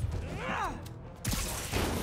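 A blast bursts with crackling sparks.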